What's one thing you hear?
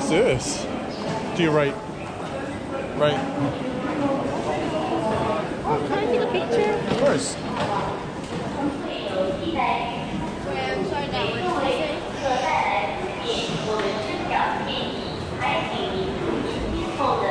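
Footsteps shuffle and tap on a hard floor.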